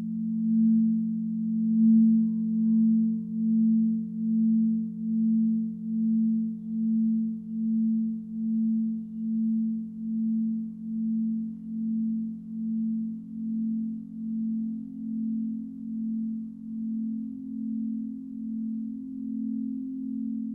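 Crystal singing bowls hum with a deep, steady, pulsing ring.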